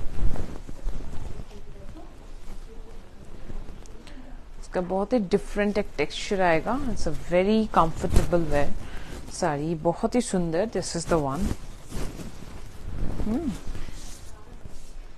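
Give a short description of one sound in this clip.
Soft fabric rustles as cloth is draped and handled close by.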